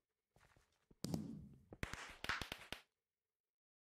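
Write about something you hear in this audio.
Fireworks pop and crackle.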